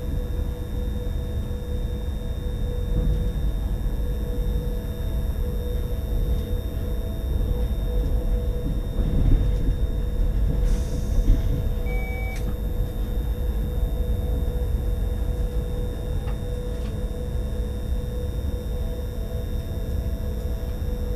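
A train rumbles steadily along the rails, heard from inside the cab.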